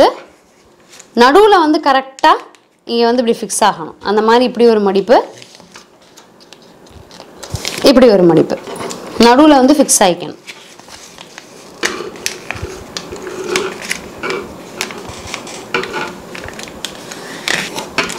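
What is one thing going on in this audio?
Shiny foil wrapping paper crinkles and rustles as it is folded.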